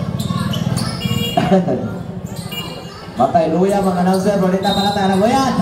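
Sneakers squeak on the court.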